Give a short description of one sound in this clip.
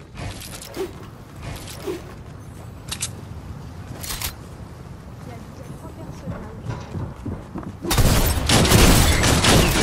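A pickaxe whooshes through the air with a swing.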